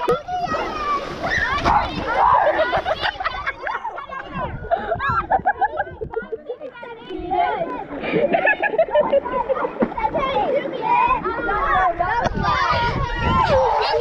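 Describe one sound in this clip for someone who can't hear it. Water splashes around as children play.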